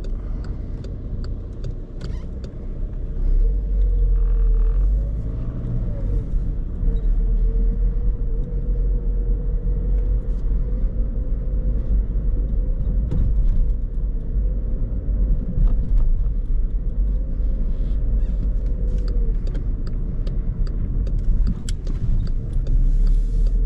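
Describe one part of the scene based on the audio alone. Raindrops tick lightly on the car.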